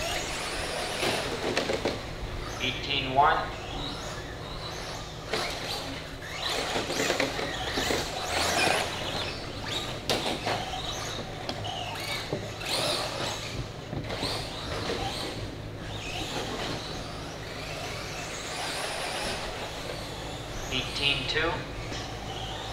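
Small electric motors of radio-controlled cars whine, rising and falling as the cars speed up and slow down.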